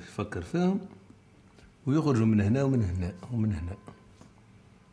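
A man talks calmly up close.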